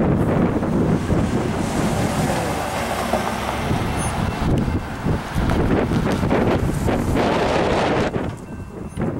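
Cars drive past on an asphalt road.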